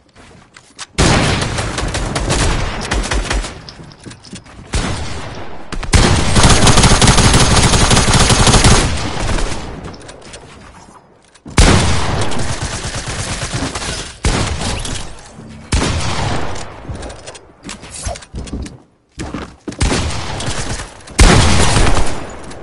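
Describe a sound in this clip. Video game gunshots fire in rapid bursts.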